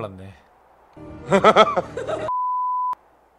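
A man laughs up close.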